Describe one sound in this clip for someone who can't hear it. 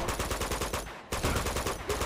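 Gunfire rattles in a video game.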